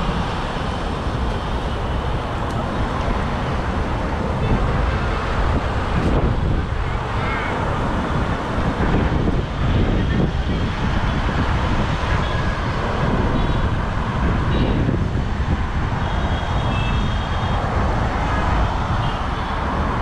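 Strong wind buffets the microphone outdoors.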